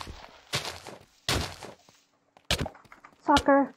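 Blows land with short, crunchy thuds.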